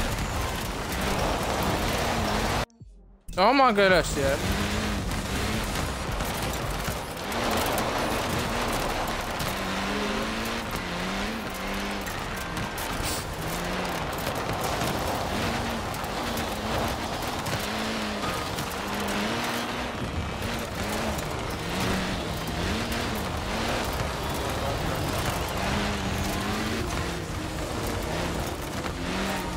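A rally car engine revs and roars, rising and falling as gears change.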